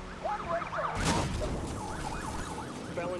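A car crashes into a barrier with a loud bang and scattering debris.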